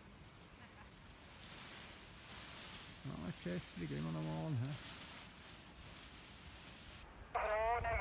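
Wind gusts across an open field.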